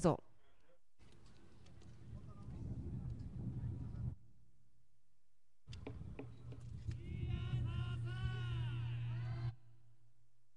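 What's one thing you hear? Hand drums are beaten in rhythm outdoors, heard from a distance.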